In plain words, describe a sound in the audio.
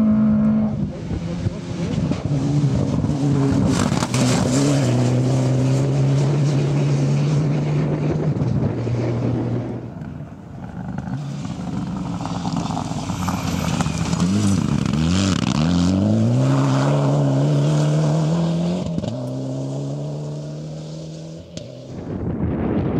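A rally car engine roars at high revs and shifts gears as it speeds past.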